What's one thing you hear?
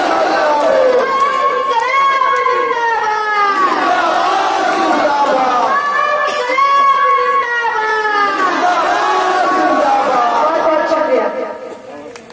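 A group of young men chant back in unison.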